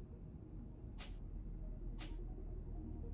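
Menu clicks sound twice.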